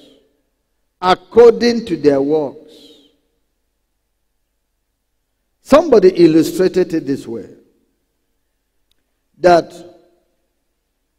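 A man preaches into a microphone with emphatic pauses.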